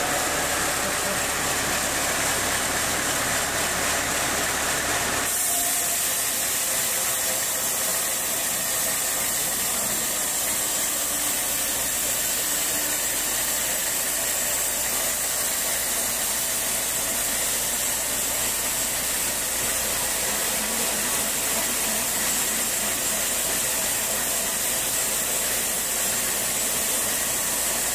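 A band saw whines steadily as it cuts through a thick log.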